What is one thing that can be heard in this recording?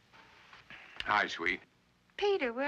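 A middle-aged man speaks briefly into a telephone.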